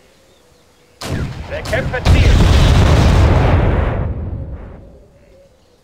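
A heavy gun fires with a loud boom that rumbles away.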